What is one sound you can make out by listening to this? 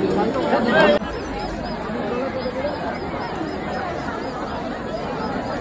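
A distant crowd murmurs outdoors.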